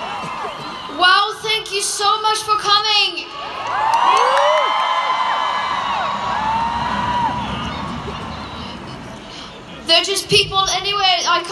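A young woman speaks loudly through loudspeakers outdoors.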